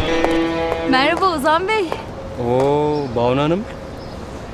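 A young man whistles a rising and falling tune nearby.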